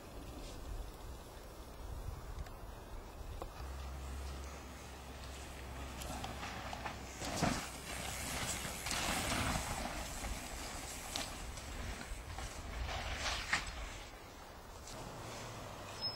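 Bicycle tyres crunch over dirt and gravel.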